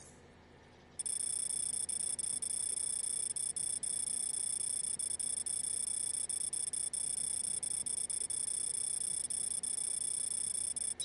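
A steady high electronic whirring plays while a number counts up.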